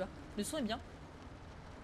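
A young woman speaks briefly and close to a microphone.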